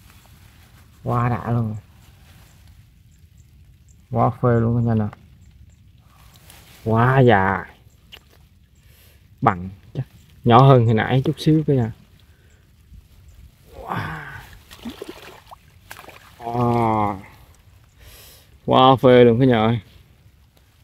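A toad croaks loudly in repeated short bursts.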